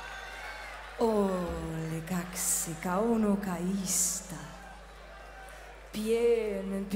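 A man sings loudly through a microphone on an outdoor stage.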